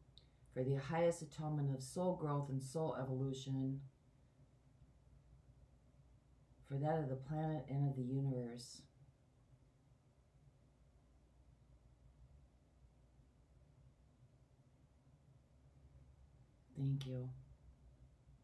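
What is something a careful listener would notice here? A woman speaks calmly and softly close by.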